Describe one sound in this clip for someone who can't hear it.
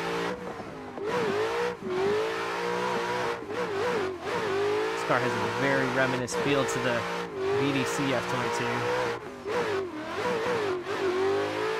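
Tyres squeal as a car slides through turns.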